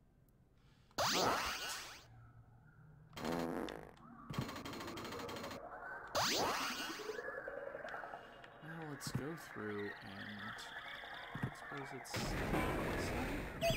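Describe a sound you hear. Video game sound effects whoosh and chime.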